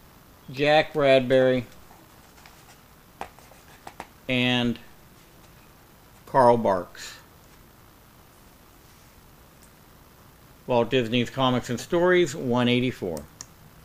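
A man talks calmly into a microphone in bursts.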